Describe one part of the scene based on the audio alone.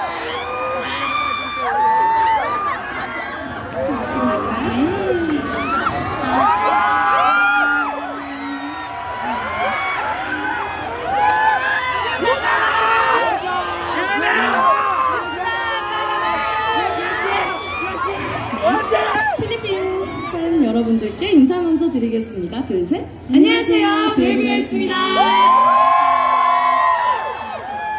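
A crowd cheers and screams loudly.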